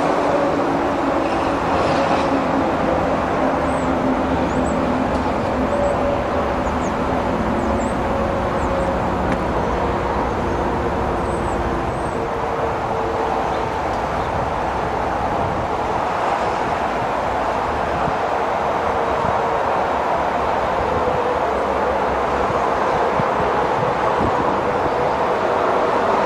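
A distant train rumbles steadily as it approaches on the tracks.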